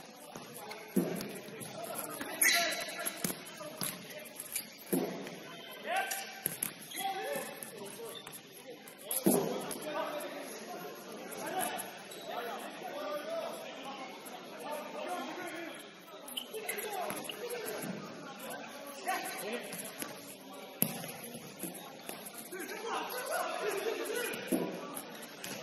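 A ball thuds as it is kicked on a hard indoor court.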